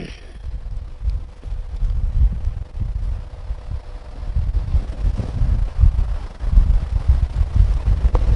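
Clothing rubs and bumps against a close microphone.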